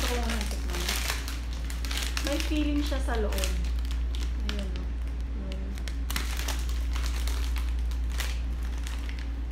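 A plastic wrapper crinkles in someone's hands.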